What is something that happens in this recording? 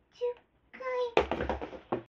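Feet thump on a wooden floor.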